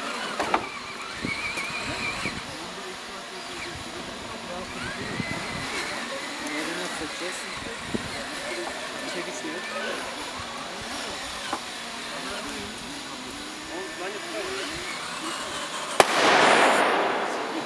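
Several men talk casually nearby, outdoors.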